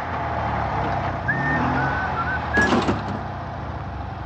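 A man shouts angrily from inside a car.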